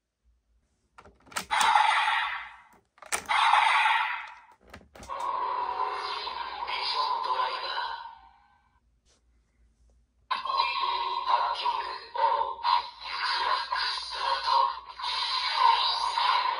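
A toy belt plays loud electronic sound effects through a small speaker.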